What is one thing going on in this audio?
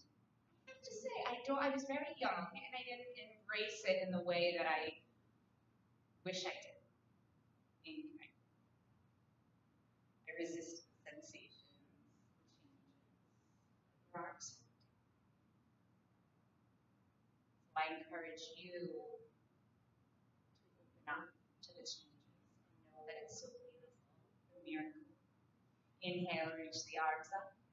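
A woman speaks calmly and clearly into a close microphone, with pauses.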